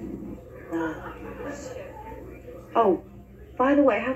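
A woman speaks through a small loudspeaker.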